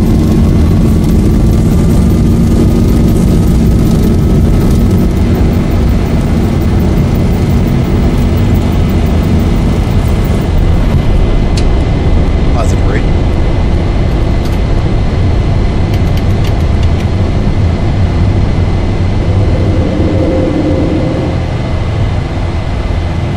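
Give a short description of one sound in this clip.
Jet engines roar loudly during a takeoff run.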